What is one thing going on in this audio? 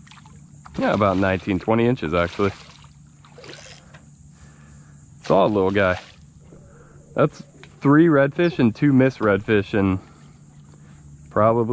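A fish thrashes and splashes at the surface of the water close by.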